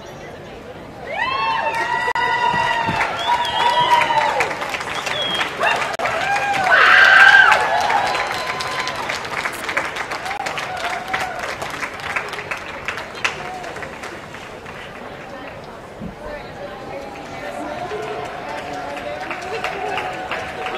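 A crowd claps and cheers in a large, echoing space.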